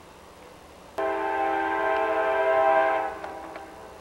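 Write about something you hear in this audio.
A train horn blares loudly and steadily.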